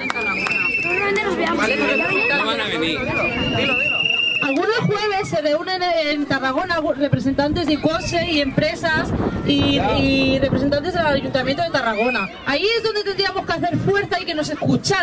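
A young woman sings through a microphone and loudspeaker.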